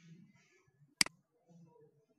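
A mouse button clicks once, sharply.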